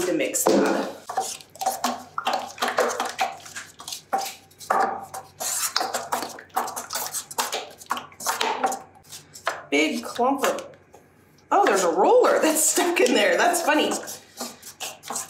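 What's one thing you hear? A stick stirs thick paint in a plastic bucket, scraping softly against its sides.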